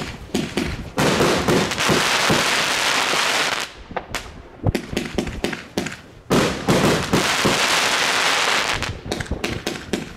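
Fireworks crackle and sizzle in rapid bursts.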